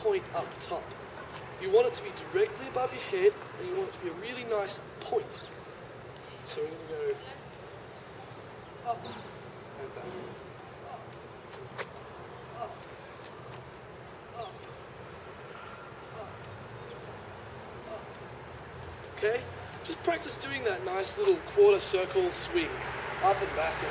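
A young man talks with animation, close by, outdoors.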